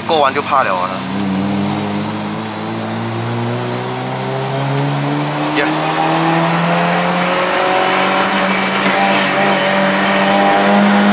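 A car engine revs up as the car speeds up.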